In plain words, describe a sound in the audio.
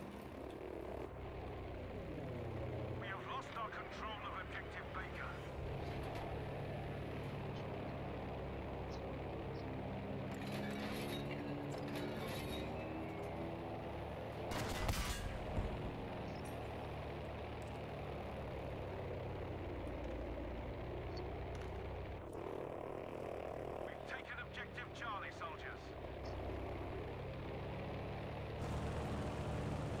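Propeller engines drone steadily, rising and falling in pitch.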